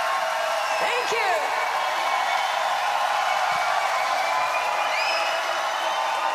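Fans in a crowd whistle shrilly.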